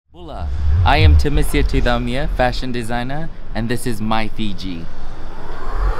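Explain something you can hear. A man speaks cheerfully and with animation, close by.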